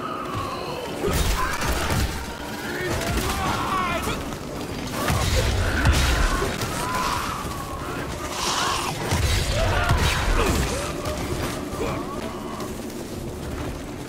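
Monsters shriek and snarl.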